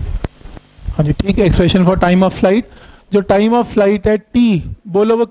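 A man speaks aloud nearby, as if explaining.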